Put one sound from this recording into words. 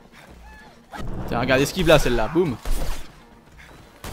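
Blows and punches land with heavy thuds during a fight.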